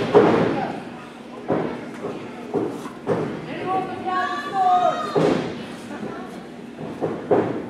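A crowd of children and adults cheers and shouts in a large echoing hall.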